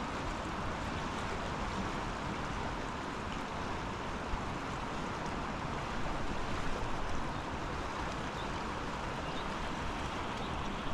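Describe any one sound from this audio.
A fast river rushes loudly over rocks nearby.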